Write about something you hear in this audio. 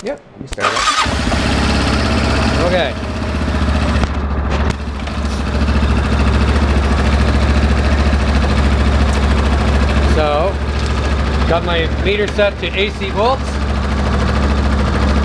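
An engine starts and idles with a steady, low rumble close by.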